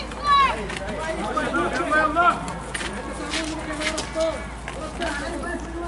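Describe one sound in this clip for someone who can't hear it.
Men shout excitedly nearby.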